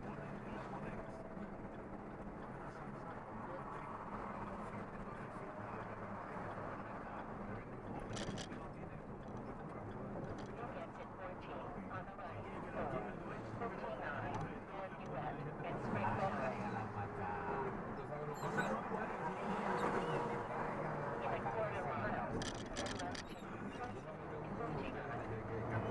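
A vehicle's engine hums steadily while driving at speed.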